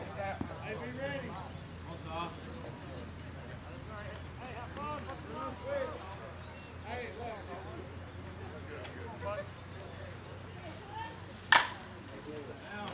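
Adult men and women chat and call out nearby outdoors.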